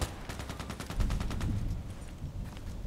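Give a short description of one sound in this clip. A rifle fires a single loud, booming shot.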